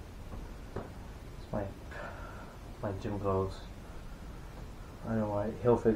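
Fabric rustles as a shirt is unfolded.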